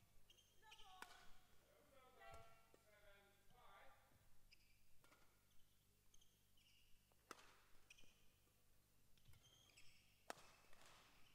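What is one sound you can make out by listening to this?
A racket smacks a shuttlecock back and forth in a large echoing hall.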